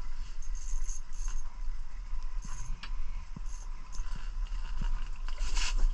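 A fishing reel clicks as its line is reeled in.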